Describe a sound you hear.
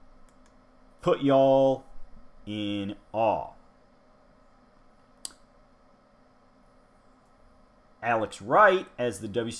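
A man speaks with animation, close to a microphone, in bursts with pauses.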